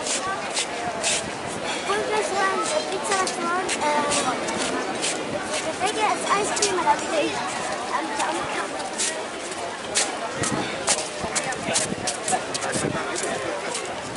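Footsteps tap on paving close by.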